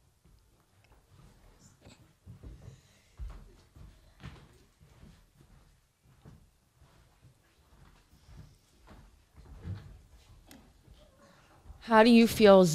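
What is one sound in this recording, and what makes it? People shuffle and move about quietly nearby.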